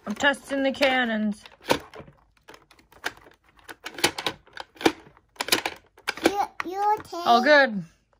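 Plastic toy pieces click and clatter.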